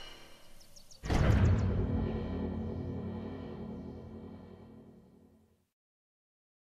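A shimmering magical chime swells and then slowly fades away.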